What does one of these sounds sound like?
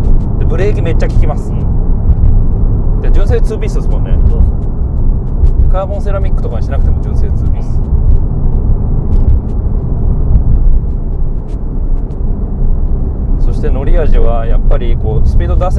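A car's engine hums and its tyres rumble steadily on the road.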